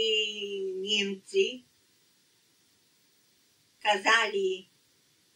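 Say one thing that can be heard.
An elderly woman speaks calmly and close by, in short phrases with a pause between.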